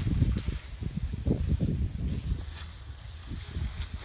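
A sickle cuts through dry grass stalks with a rustle.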